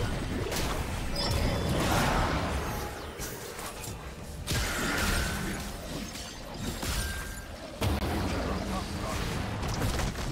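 Game combat sound effects of spells and strikes clash and burst.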